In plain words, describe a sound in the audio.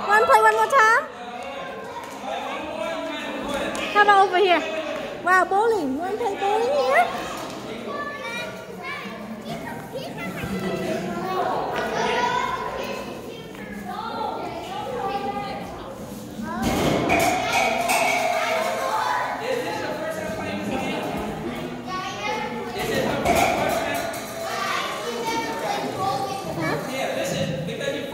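Children chatter and call out nearby in an echoing hall.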